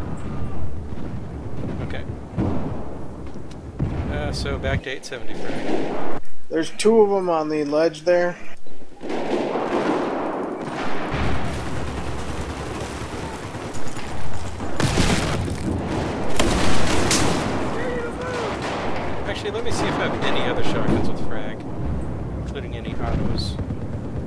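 Gunfire bursts rapidly at close range.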